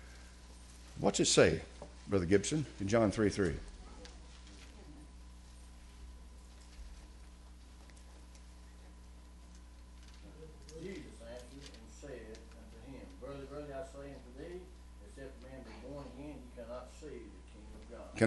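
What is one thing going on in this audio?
An elderly man speaks calmly into a microphone, his voice sometimes rising to a loud, forceful delivery.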